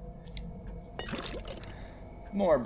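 A heavy ceramic lid scrapes and clunks.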